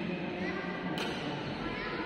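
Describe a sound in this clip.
A racket strikes a shuttlecock with a sharp smack in an echoing hall.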